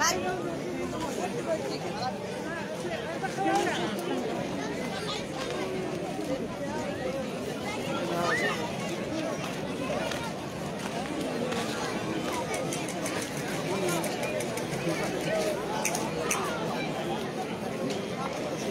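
A large crowd of men and women murmurs and chatters outdoors.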